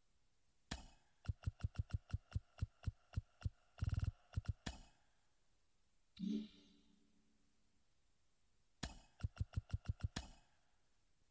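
Short electronic menu ticks click in quick runs.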